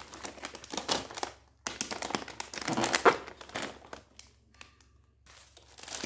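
A crisp packet crackles as it is handled.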